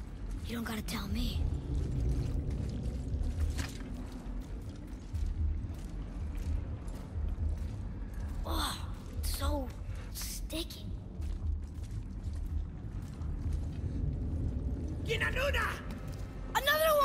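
Heavy footsteps crunch over rough ground.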